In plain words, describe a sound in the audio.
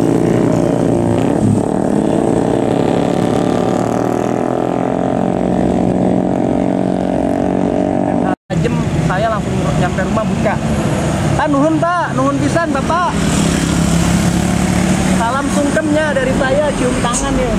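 A heavy truck engine rumbles as the truck drives past.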